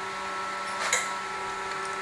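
Metal clanks sharply.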